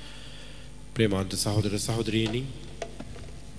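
A man speaks firmly into a microphone over a loudspeaker.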